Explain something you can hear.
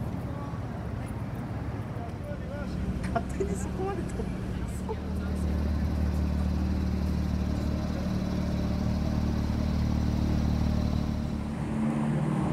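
A sports car engine idles with a deep rumble.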